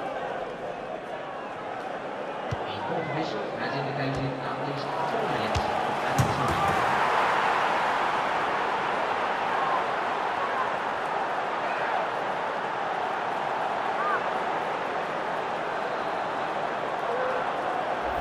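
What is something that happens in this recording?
A large crowd roars and cheers, swelling loudly and then holding steady.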